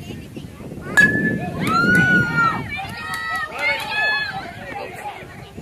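Young boys shout and cheer excitedly outdoors.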